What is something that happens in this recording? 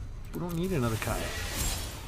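A magical whoosh swells as a spell is cast.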